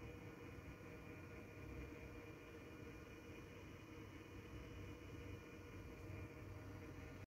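A small turntable motor hums steadily.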